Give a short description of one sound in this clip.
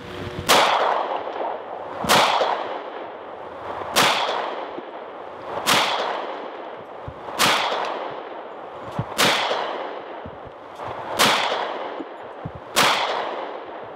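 A pistol fires loud single shots that ring out across open hills.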